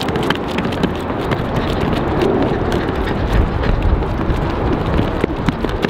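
Footsteps slap quickly on concrete as a man runs.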